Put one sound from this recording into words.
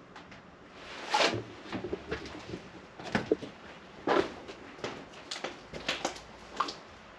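Footsteps crunch on debris-strewn floor.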